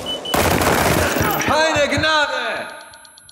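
An assault rifle fires in rapid shots.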